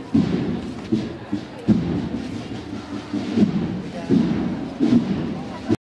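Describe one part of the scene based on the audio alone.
A crowd murmurs nearby outdoors.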